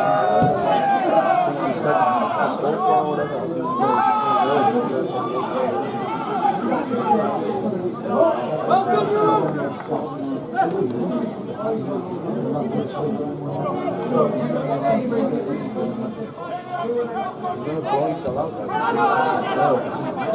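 Men's voices shout and call out across an open outdoor pitch.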